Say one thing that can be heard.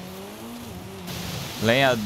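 Water splashes and sprays under car tyres.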